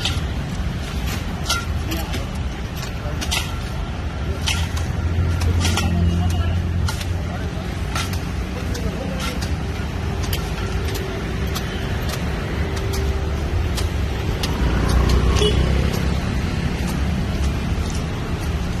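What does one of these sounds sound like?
Sickles swish and chop through long grass and brush.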